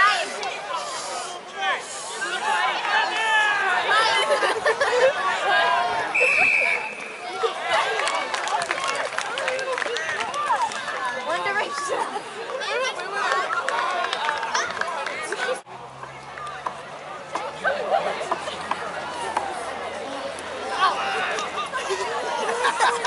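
A crowd of spectators and players shouts and cheers outdoors.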